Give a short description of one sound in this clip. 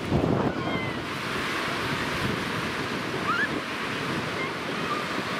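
Small waves wash gently onto a sandy shore outdoors.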